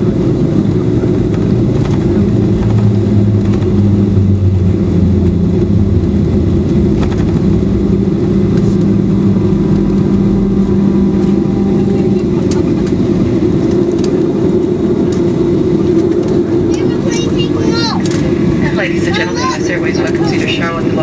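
Jet engines roar loudly and steadily.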